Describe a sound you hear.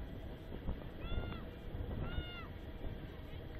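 Young women shout to each other across an open field, heard from a distance.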